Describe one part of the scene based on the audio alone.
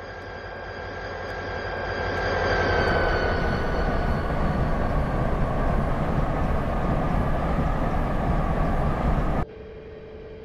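A diesel locomotive engine rumbles and roars loudly.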